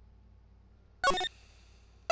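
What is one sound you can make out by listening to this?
A short menu chime sounds.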